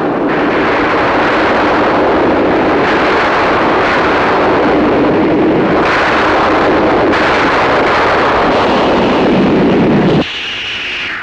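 Thunder crashes and rumbles loudly.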